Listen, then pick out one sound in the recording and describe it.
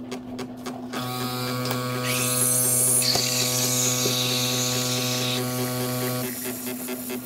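A coffee machine pump buzzes steadily.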